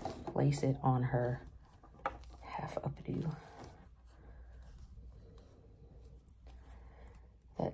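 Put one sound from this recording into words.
Synthetic doll hair rustles softly under fingers.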